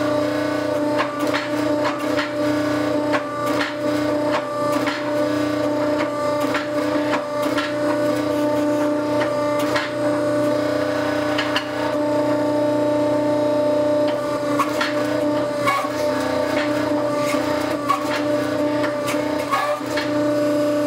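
Metal clanks sharply as a press squeezes a glowing block.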